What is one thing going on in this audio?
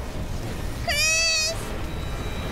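A young boy screams in fright.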